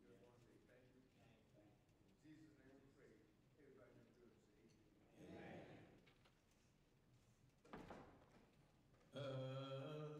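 An older man speaks slowly and solemnly through a microphone in an echoing hall.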